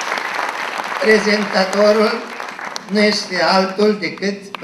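An elderly man speaks through a microphone and loudspeakers, echoing in a large hall.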